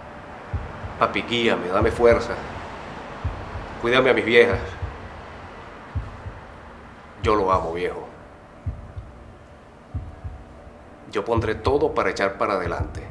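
A man speaks intensely in short bursts, close by.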